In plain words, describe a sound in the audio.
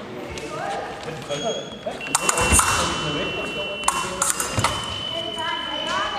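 Metal blades clash and scrape as fencers spar.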